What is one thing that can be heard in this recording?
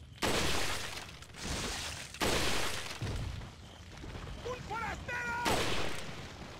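A rifle fires loud booming shots, each ringing out briefly.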